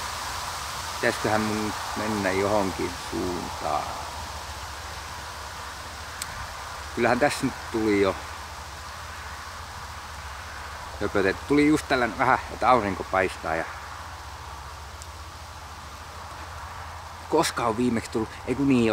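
A middle-aged man speaks calmly and close by, in short bursts with pauses.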